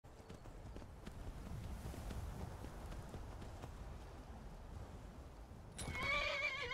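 A horse's hooves clop on stone.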